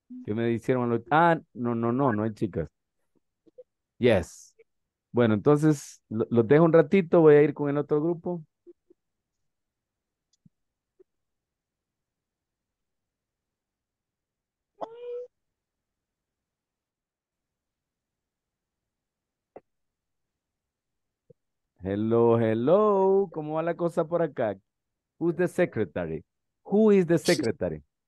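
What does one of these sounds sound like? A man speaks calmly through a headset microphone over an online call, with pauses.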